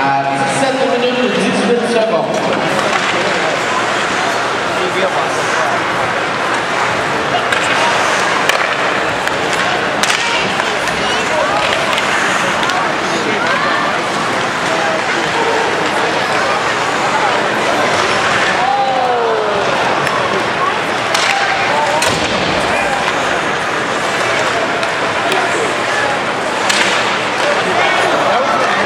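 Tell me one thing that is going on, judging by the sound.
A large crowd murmurs and chatters throughout an echoing arena.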